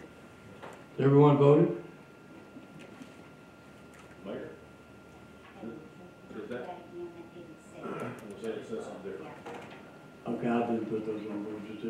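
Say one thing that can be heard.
A man speaks calmly over a microphone in a large room.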